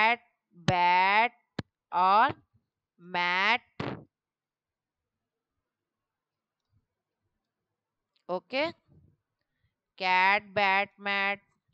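A woman speaks in drawn-out words over an online call.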